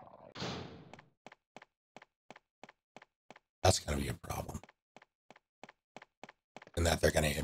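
Footsteps tap briskly on stone paving.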